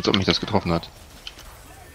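A magic energy beam blasts with a loud whoosh.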